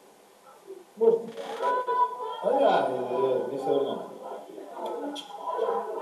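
A man speaks into a microphone, heard through an online call.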